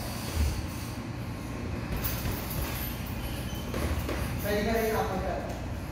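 Bare feet thud and shuffle on a boxing ring's canvas.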